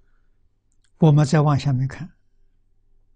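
An elderly man speaks calmly into a close microphone.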